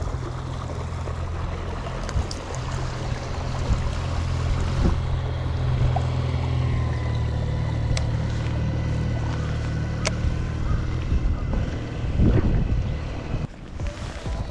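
A boat's outboard motor hums steadily as the boat passes nearby and moves away.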